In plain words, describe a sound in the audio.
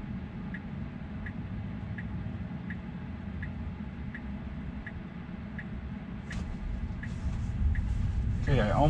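A car's turn signal ticks evenly.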